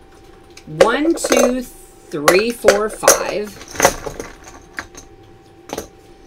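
Hands rattle small objects in a cup.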